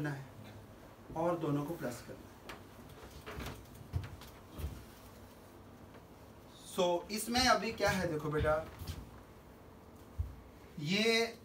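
A middle-aged man speaks calmly nearby, explaining.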